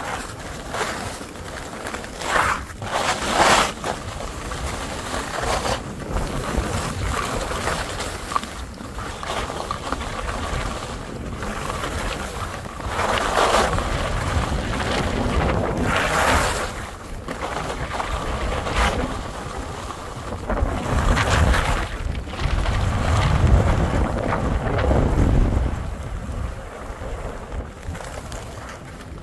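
Skis scrape and hiss over snow in swelling bursts.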